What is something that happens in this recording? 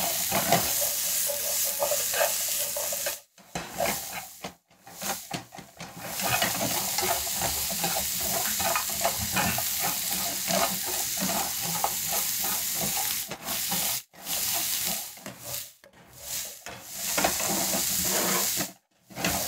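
Vegetables sizzle in a hot frying pan.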